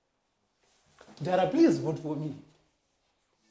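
A young man speaks up close.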